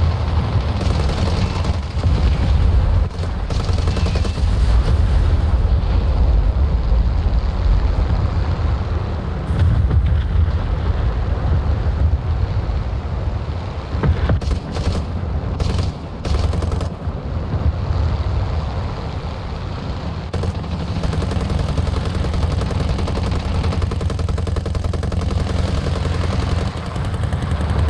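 A propeller plane's engine drones loudly and steadily.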